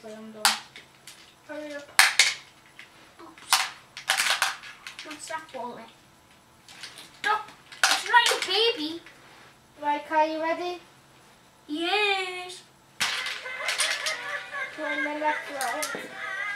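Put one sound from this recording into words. A young girl talks and exclaims close by.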